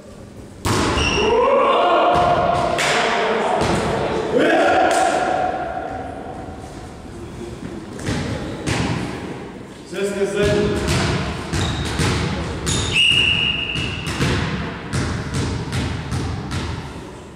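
A volleyball thuds as players strike it.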